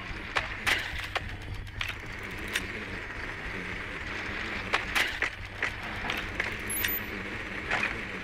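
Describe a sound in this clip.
A small remote-controlled drone rolls and rattles across a hard floor.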